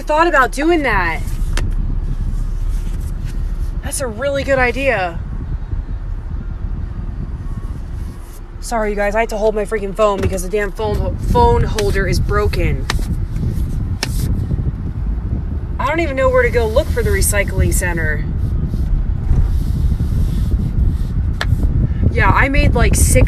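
A car engine hums and rumbles low while driving.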